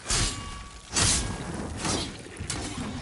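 A fiery sword swings and whooshes through the air.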